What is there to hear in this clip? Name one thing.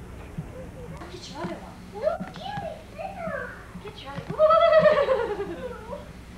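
A young child squeals and babbles.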